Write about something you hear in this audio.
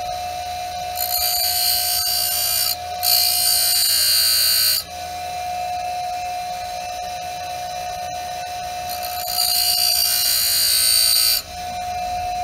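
A metal blade grinds against a spinning stone wheel with a harsh hiss.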